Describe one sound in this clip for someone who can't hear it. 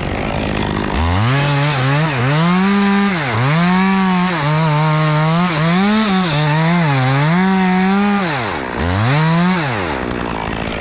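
A chainsaw roars close by, its engine revving up and down as it cuts into wood.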